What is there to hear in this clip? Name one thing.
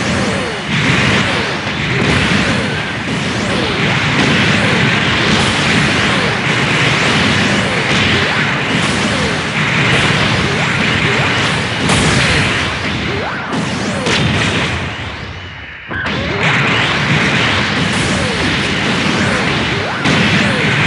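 Laser blasts fire and crackle in rapid bursts.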